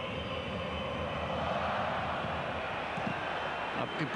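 A stadium crowd swells into a loud cheer.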